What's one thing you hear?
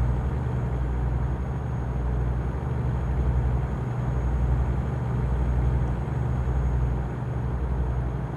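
A truck engine drones low and steady as it drives along.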